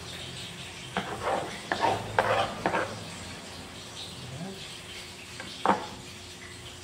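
A knife chops on a wooden board.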